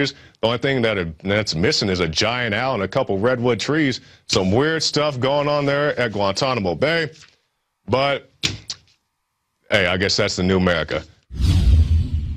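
A man speaks calmly and clearly into a microphone, like a newsreader.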